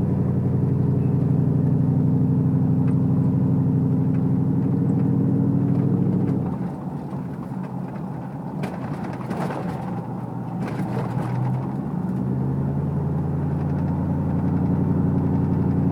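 A car engine hums steadily, easing off for a while and then pulling again.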